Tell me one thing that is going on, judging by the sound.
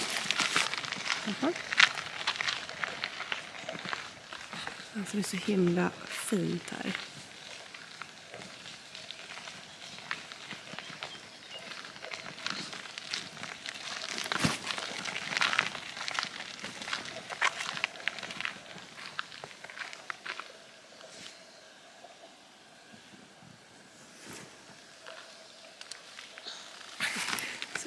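Stroller wheels crunch and rattle over a gravel path.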